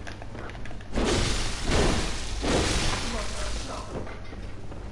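Sword blows slash and strike a creature.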